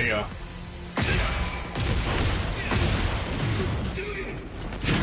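Fiery energy blasts roar and crackle.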